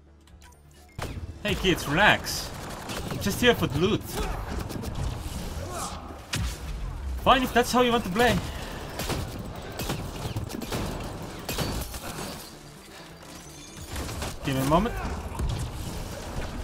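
Gunfire and energy blasts crackle in a fast fight.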